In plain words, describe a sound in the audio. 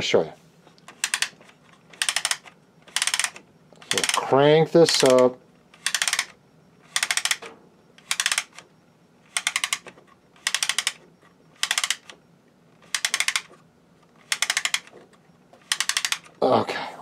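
A wooden gear mechanism rattles and clicks in short, even bursts as it is wound by hand.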